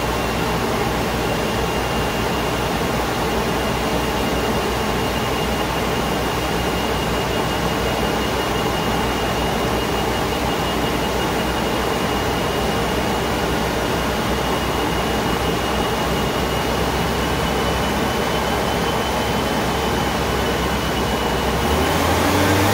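A turbocharged four-cylinder car idles on a chassis dyno.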